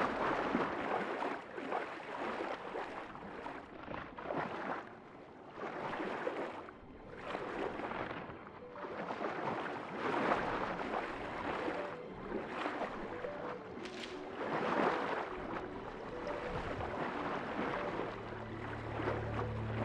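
Water swishes and bubbles with a muffled underwater sound.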